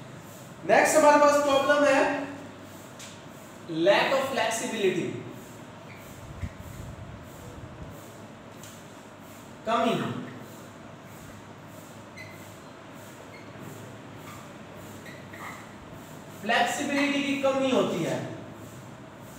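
A man speaks calmly into a nearby microphone, in short phrases.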